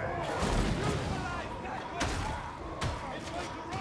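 An explosion bursts with a deep boom.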